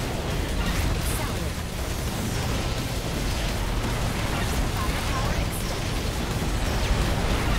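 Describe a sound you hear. Rapid laser shots and blasts from a video game crackle and boom.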